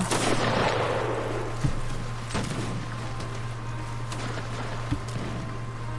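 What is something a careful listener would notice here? Muskets fire with loud cracks that echo and fade.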